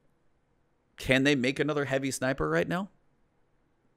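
A man speaks with animation into a close microphone, heard as if over an online call.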